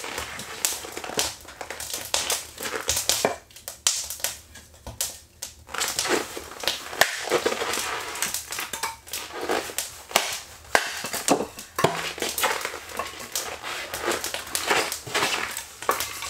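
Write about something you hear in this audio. An axe splits wood with sharp, repeated knocks.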